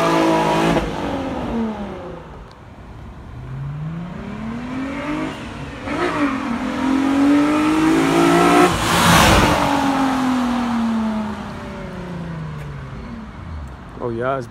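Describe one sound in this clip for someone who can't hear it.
A sports car engine revs loudly, rising and falling in pitch.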